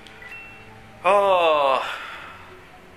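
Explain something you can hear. A bright video game jingle chimes as a game is saved.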